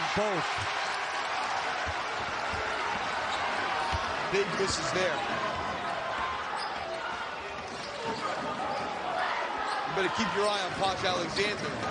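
A basketball bounces on the court as a player dribbles.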